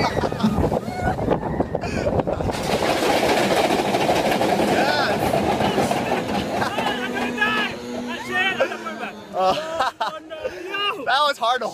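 A young man laughs and shouts close by.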